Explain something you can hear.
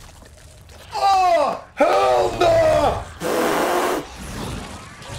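A creature lets out a loud, rasping screech.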